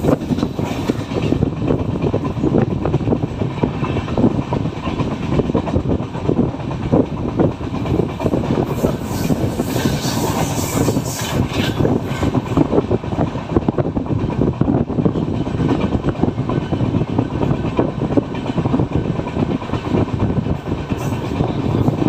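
A train rumbles and clatters fast over the rails.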